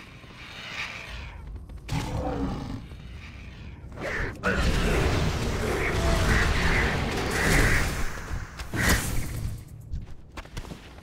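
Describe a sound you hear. Weapons and spells clash and crackle in a loud fight.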